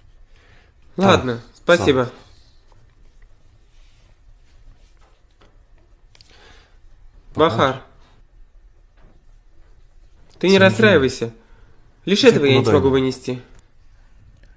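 A man speaks softly and with emotion nearby.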